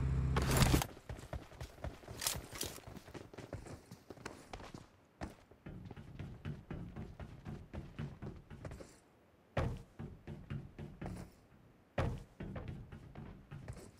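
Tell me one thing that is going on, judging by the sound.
Footsteps run quickly across ground and hollow metal roofs.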